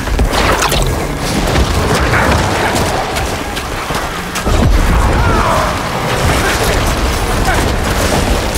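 Magic blasts boom and crackle in a dense fight.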